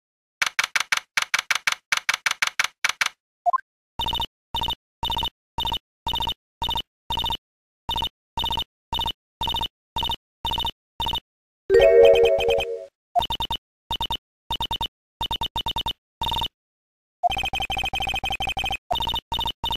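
Short electronic beeps tick rapidly in bursts.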